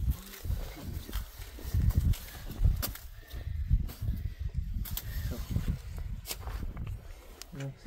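Leafy branches brush and swish against a carpet.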